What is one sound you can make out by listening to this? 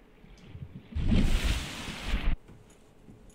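Water splashes and gushes as a swimmer climbs out of the water.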